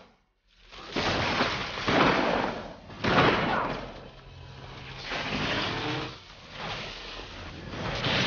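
Electric blasts crackle and zap in loud bursts.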